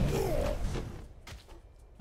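A magic beam crackles and blasts.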